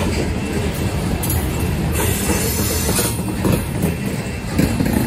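A freight train rumbles steadily past on the tracks, its wheels clattering.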